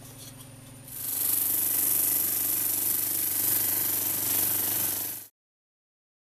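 A sanding machine runs with a steady, hissing whir.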